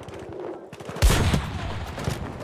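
A rifle fires a loud, sharp shot that echoes away.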